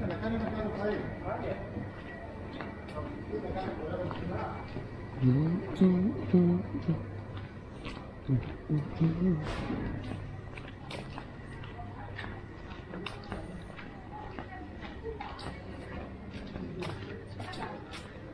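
Footsteps tap on a stone pavement outdoors.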